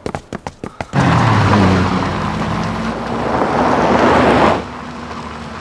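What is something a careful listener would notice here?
A car engine roars as the car drives past.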